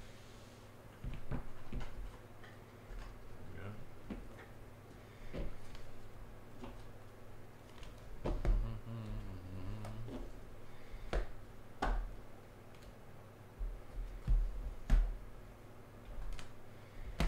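Plastic card cases clack and tap together as they are handled.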